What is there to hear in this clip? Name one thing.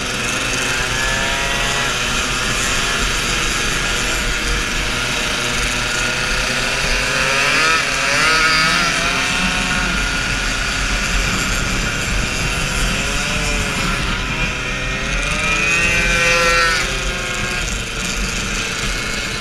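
Wind roars past at speed.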